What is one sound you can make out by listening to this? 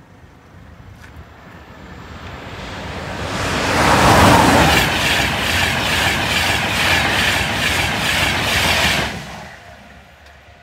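A high-speed train approaches and rushes past with a loud roar.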